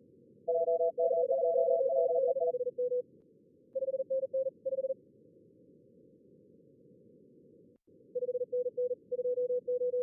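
A radio gives out short, beeping tones in quick bursts over a low hiss.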